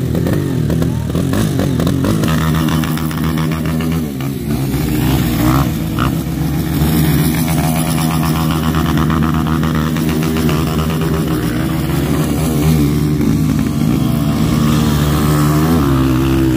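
A dirt bike engine revs loudly, rising and falling in pitch.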